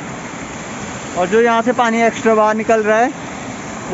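Water pours steadily over a small weir.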